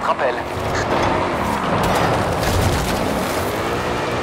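A car crashes through brush with cracking and thudding.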